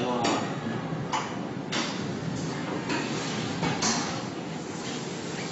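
A conveyor line hums and rattles steadily.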